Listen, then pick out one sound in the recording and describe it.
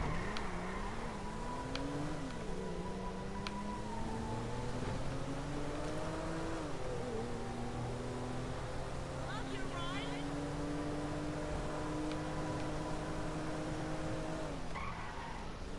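A car engine hums and revs up and down as a car drives along.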